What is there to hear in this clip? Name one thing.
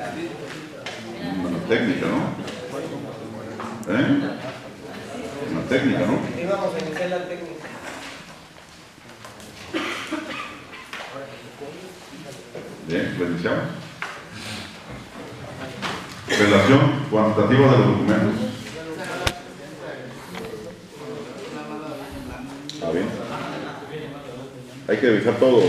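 A man speaks steadily in a room with a light echo.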